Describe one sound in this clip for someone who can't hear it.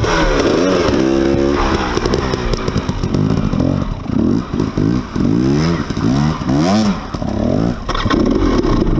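A second motorbike revs as it rides away.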